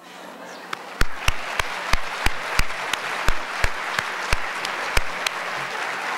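A man claps his hands close to a microphone.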